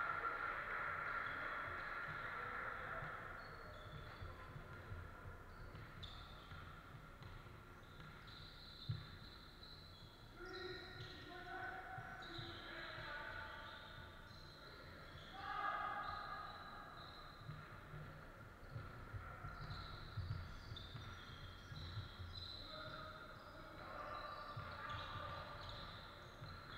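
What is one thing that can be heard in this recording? Young men shout and call out to one another across a large echoing hall.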